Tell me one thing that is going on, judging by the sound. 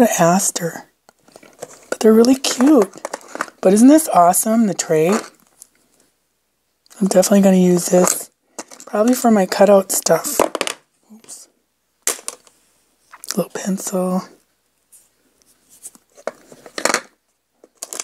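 Small ceramic ornaments tap and click against a plastic case.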